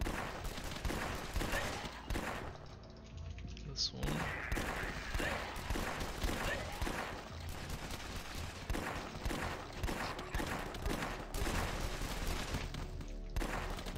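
Gunshots crack repeatedly.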